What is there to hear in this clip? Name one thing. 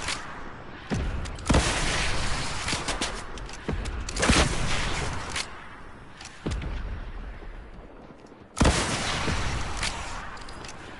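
Gunshots crack sharply, one at a time, each followed by a ringing echo.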